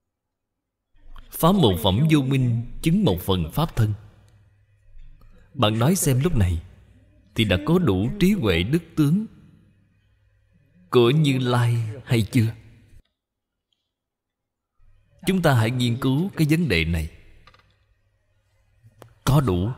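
An elderly man speaks calmly and warmly into a microphone, with pauses.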